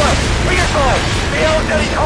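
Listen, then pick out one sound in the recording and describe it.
Explosions boom and rumble close by.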